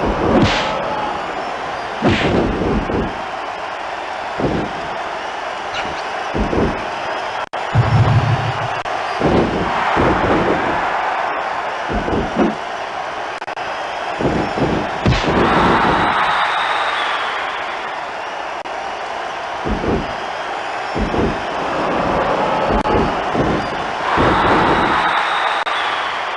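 Heavy blows and slams thud again and again.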